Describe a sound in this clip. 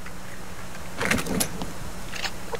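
A short rattle sounds as an item is picked up.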